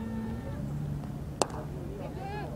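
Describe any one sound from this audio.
A cricket bat strikes a ball with a sharp crack in the distance.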